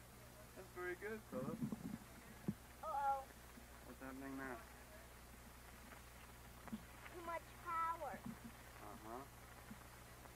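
A young boy talks in short bursts nearby.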